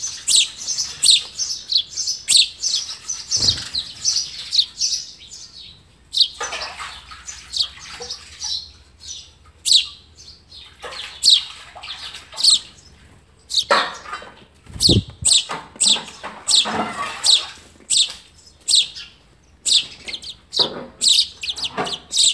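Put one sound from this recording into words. An adult bird flutters its wings at a nest.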